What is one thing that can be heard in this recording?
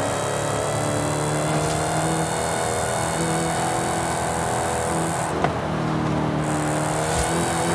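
Tyres hum loudly on the road.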